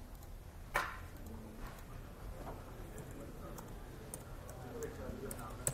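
Keys on a laptop keyboard click as a person types.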